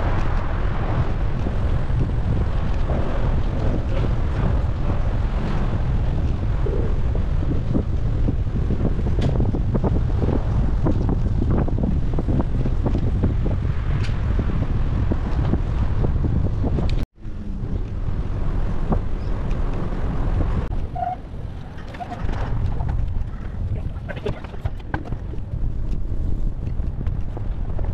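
Wind rushes and rumbles steadily past a moving cyclist.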